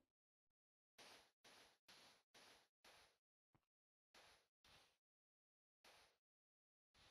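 Footsteps tap steadily on stone.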